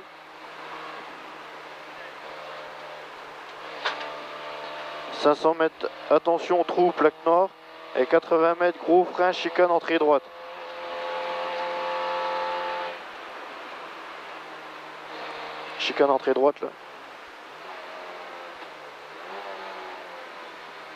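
A car engine roars steadily, its pitch rising and falling with gear changes.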